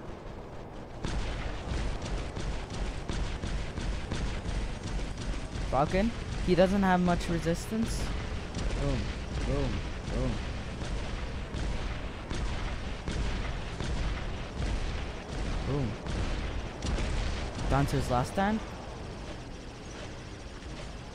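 Rapid gunfire from a video game clatters steadily.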